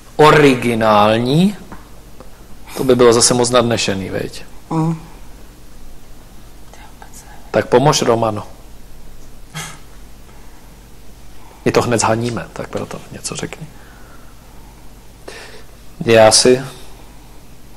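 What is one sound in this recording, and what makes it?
A man talks calmly, heard close by.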